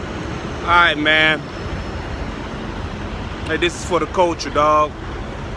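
A man speaks close to a microphone in short, lively phrases.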